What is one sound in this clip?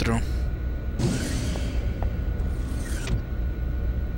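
A sliding door hisses open and shut.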